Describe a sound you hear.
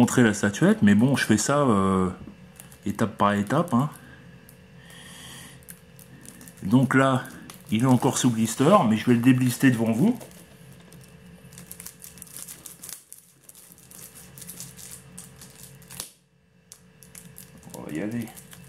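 A plastic-wrapped game case crinkles and taps as it is handled.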